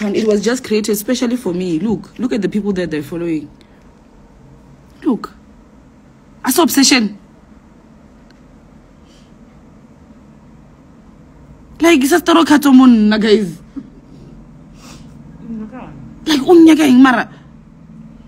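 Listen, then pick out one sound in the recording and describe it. A young woman talks with animation, close to a phone microphone.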